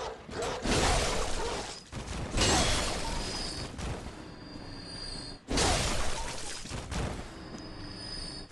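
Wooden crates smash and splinter loudly.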